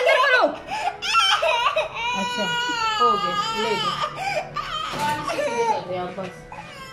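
A young girl cries and wails loudly close by.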